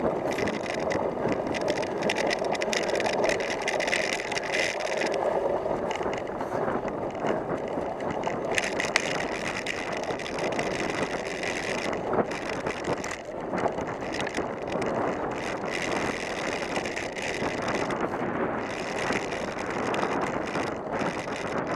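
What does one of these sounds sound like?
Bicycle tyres rumble and rattle over rough grass.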